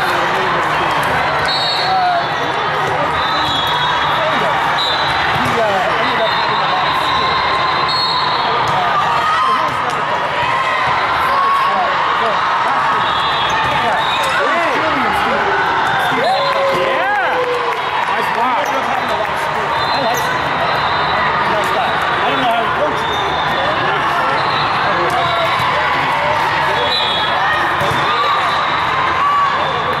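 A large crowd chatters and shouts, echoing through a big hall.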